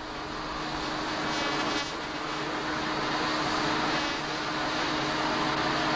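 A high jet engine whine rings steadily.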